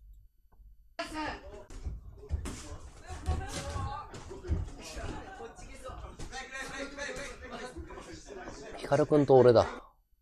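Feet shuffle and stamp on a ring mat.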